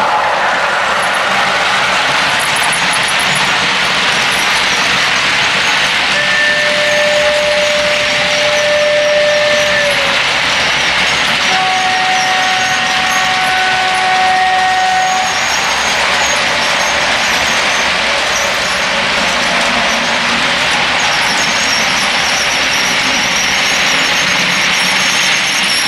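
A model locomotive's engine hums steadily.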